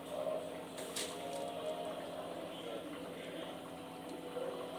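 Rice patters into a pot of broth.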